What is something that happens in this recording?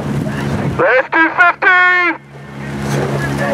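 A woman coxswain calls out loudly to a rowing crew.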